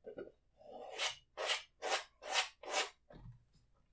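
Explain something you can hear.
A brush scrubs and taps against a canvas.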